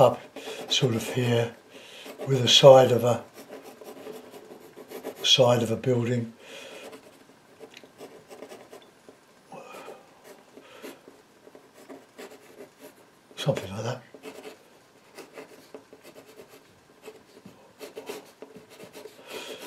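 A brush scratches lightly across a canvas.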